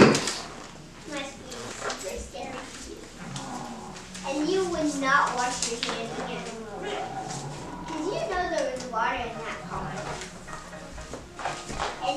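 A young boy talks nearby.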